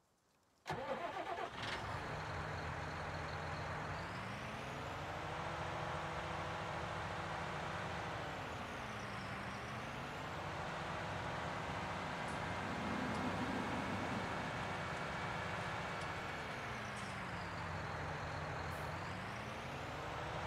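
A tractor engine starts up and rumbles steadily, rising and falling in pitch as it revs.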